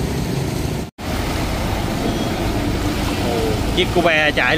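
A digger's diesel engine rumbles close by.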